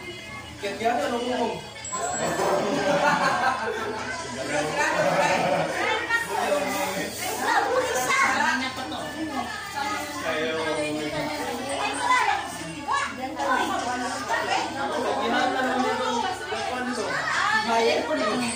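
Several women and children chatter at once in a small, lively room.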